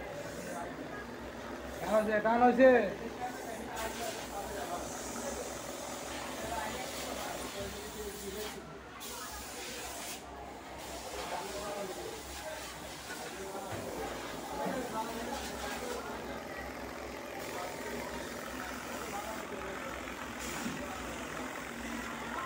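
An industrial multi-needle smocking machine stitches.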